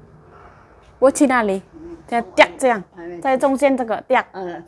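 An elderly woman talks cheerfully close by.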